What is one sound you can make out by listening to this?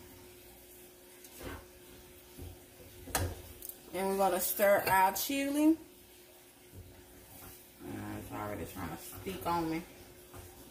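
A utensil scrapes and clinks against a frying pan.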